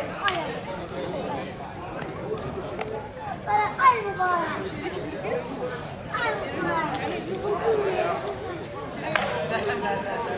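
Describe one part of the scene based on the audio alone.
Several men talk and call out together outdoors in an open space.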